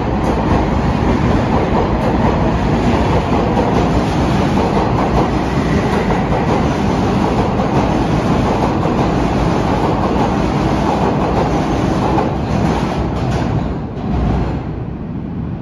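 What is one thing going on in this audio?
A subway train roars past at speed, its wheels rumbling and rattling on the rails, then the noise drops away.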